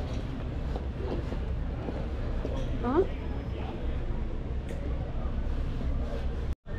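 Footsteps tap on a stone pavement.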